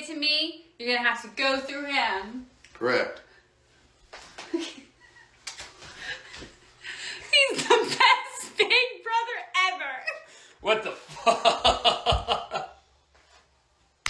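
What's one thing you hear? A young woman talks and laughs close by.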